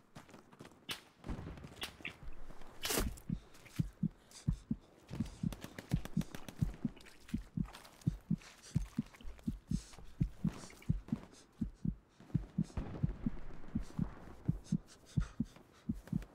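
Dry reeds rustle and swish against a moving body.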